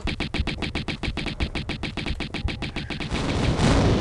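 Pistols fire in rapid, steady bursts.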